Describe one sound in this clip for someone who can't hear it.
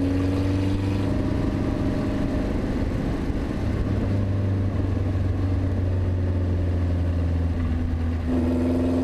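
A sports car engine roars loudly at high revs, its pitch dipping and rising with gear changes.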